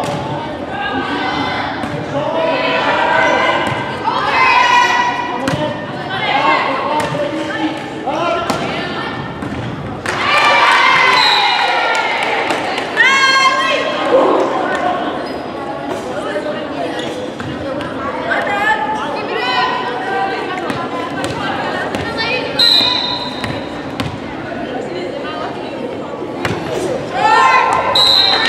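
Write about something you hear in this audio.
Young women shout and cheer loudly in a large echoing hall.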